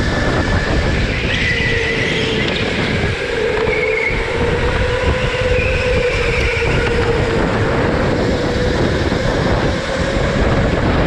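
Electric go-kart motors whine steadily at speed.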